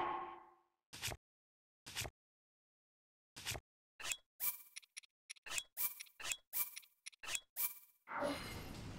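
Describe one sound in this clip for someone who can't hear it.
Short electronic menu blips tick one after another.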